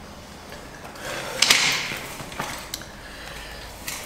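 A chair scrapes as it is moved.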